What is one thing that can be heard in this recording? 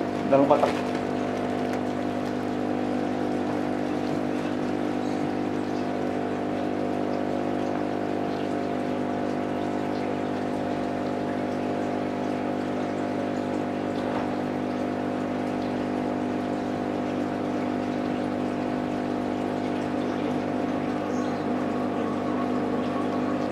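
Air bubbles stream and bubble steadily through water.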